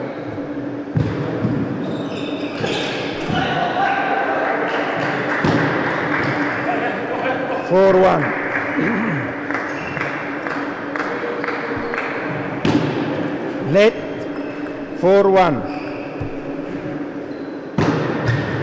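A ping-pong ball clicks sharply against paddles and the table.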